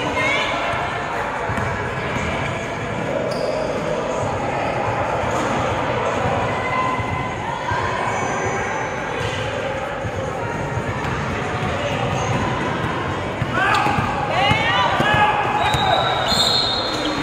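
Players and spectators chatter and call out in a large echoing gym.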